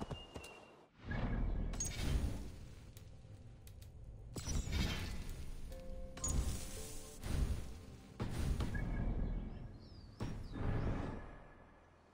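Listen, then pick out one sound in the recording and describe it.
Menu selections click and chime.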